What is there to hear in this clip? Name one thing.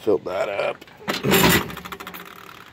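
Loose metal cartridges rattle inside a plastic jar.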